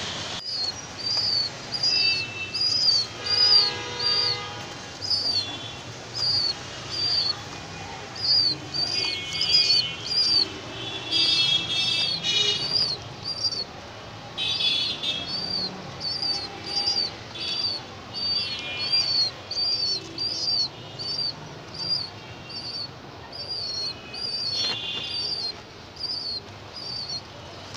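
A pigeon pecks at seeds in a plastic feeder with quick taps.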